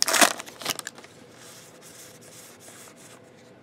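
Trading cards shuffle and slide softly against each other.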